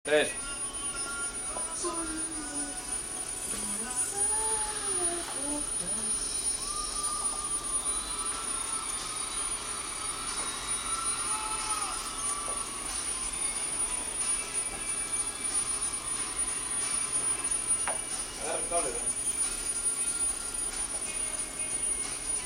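Small electric motors whir and whine in shifting pitches as a jointed robot slithers across a floor.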